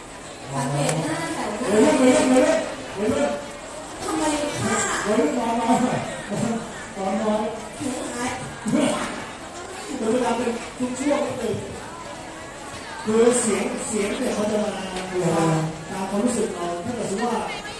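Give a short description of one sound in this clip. A young woman speaks through a microphone and loudspeakers.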